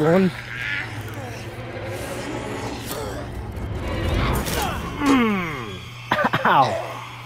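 A woman screams and snarls up close.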